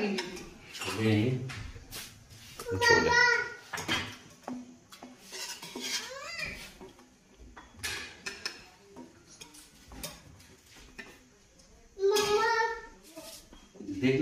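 A metal ladle clinks and scrapes against a pot.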